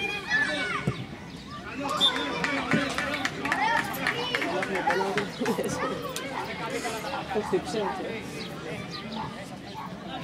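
Young boys shout and call out to each other outdoors.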